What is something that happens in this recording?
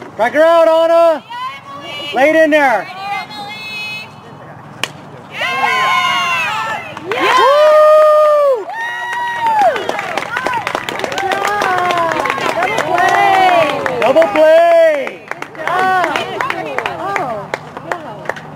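Young women shout and cheer loudly outdoors.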